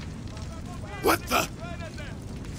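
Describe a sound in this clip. A man exclaims in surprise.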